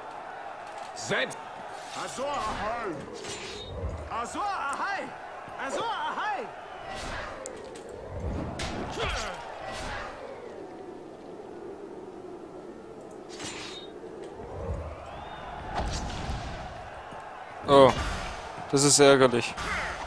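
Swords clash and strike in quick blows.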